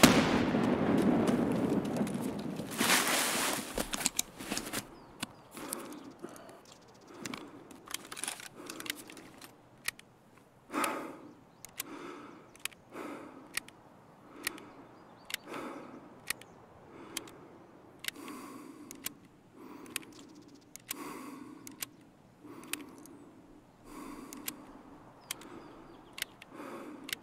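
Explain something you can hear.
A man talks calmly and steadily into a close microphone.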